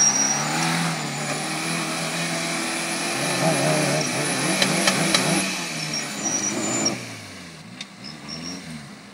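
An off-road vehicle's engine revs and labours as it climbs a steep slope.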